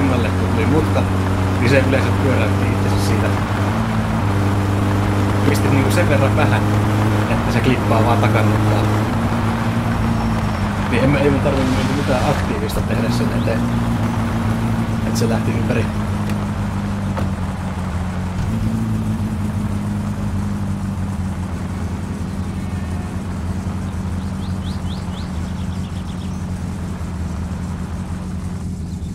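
A car engine hums steadily and changes pitch as the car drives.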